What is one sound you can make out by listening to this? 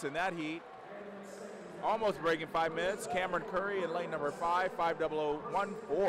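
A crowd cheers in a large echoing hall.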